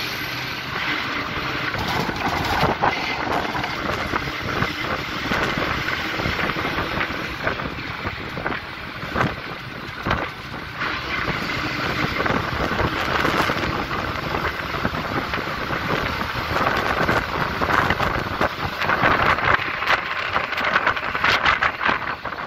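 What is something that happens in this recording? A bus drives along a paved road.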